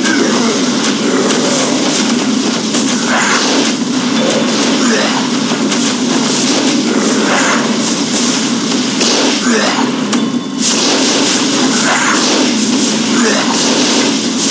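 Explosions boom in a battle.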